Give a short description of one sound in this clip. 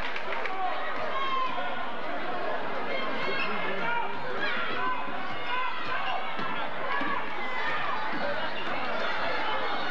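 A large crowd chatters and cheers in an echoing gym.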